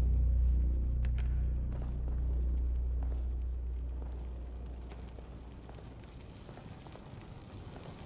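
Soft footsteps creep across a hard tiled floor.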